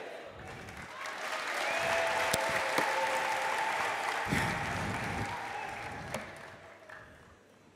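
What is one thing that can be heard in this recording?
A large audience cheers and claps.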